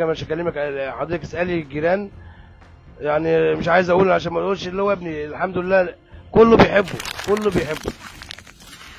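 A middle-aged man speaks close to a microphone with animation.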